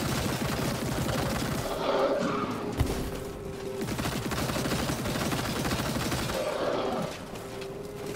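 Energy blasts crackle and burst on impact.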